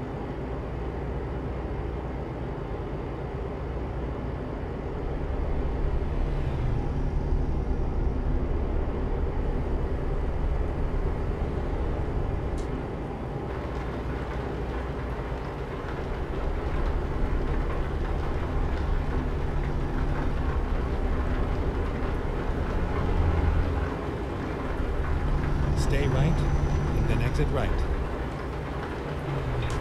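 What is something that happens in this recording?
A heavy diesel truck engine drones from inside the cab while cruising on a motorway.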